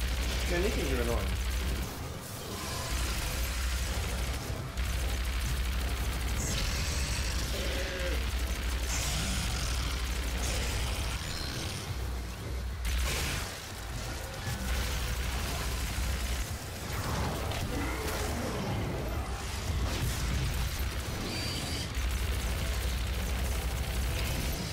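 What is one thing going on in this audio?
A plasma gun fires rapid crackling bursts.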